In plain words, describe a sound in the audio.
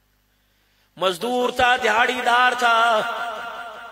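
A man chants melodiously through a loudspeaker system, heard from a distance with echo.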